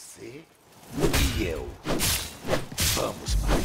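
Weapons strike wooden shields with heavy thuds.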